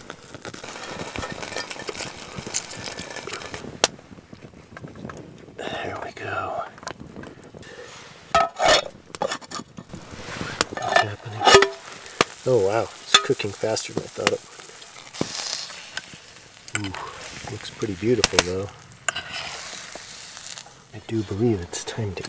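Butter and fish sizzle in a hot pan.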